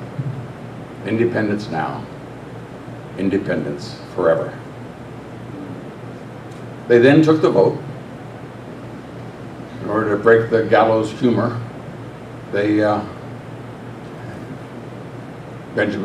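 An elderly man speaks slowly and deliberately through a microphone, with pauses between phrases.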